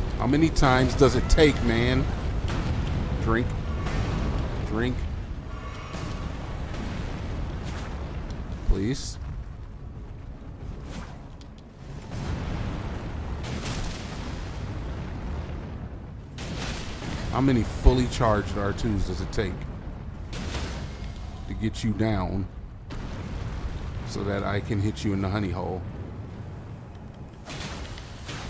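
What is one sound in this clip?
A giant stone creature stomps heavily with deep thuds.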